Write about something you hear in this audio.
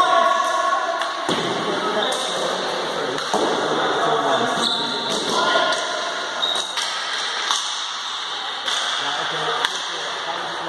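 Players shout to each other across an echoing hall.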